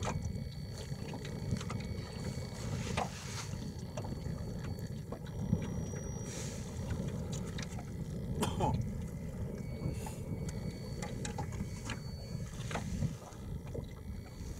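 Choppy water splashes and laps.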